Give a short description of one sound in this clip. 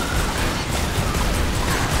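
Pistols fire in rapid bursts of gunshots.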